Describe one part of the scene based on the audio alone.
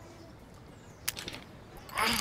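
A small metal padlock clicks onto a tile.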